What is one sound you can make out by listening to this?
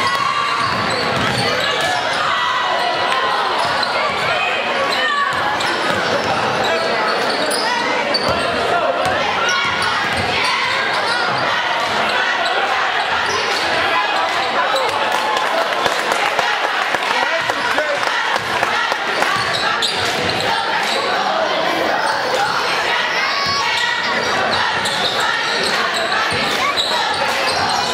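A crowd of spectators chatters and cheers throughout in a large echoing gym.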